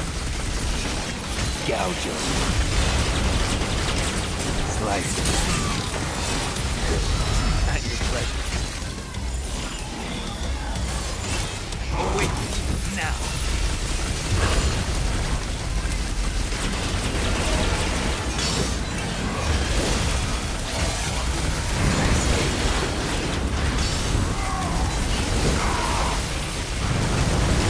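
Sword slashes and hits clash throughout a fast fight.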